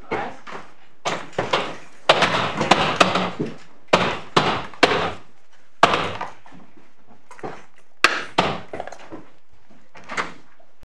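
Several people rise to their feet, with chairs and benches knocking and shuffling.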